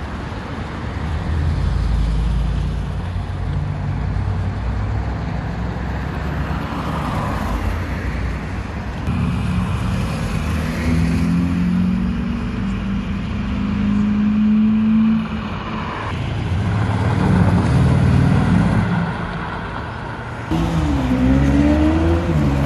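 Outdoors, traffic hums steadily in the street.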